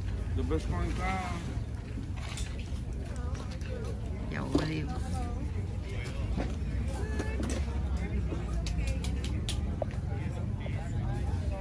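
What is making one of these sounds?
Adults chat in the background outdoors.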